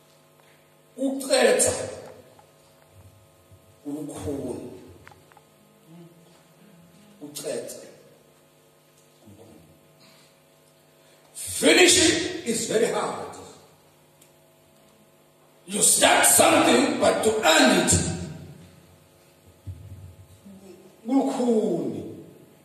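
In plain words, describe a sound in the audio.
A man preaches into a microphone in bursts of loud, impassioned speech, echoing through a loudspeaker.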